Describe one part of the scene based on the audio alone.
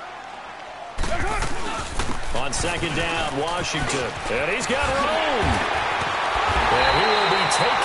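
Football players' pads thud together in a hard tackle.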